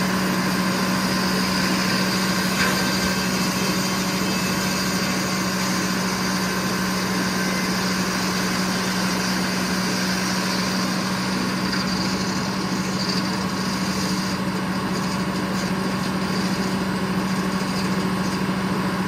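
A large circular saw blade whines as it cuts through a log.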